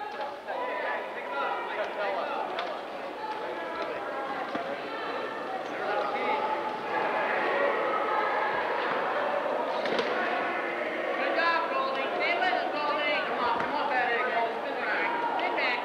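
Several young people shout and call out to each other in a large echoing hall.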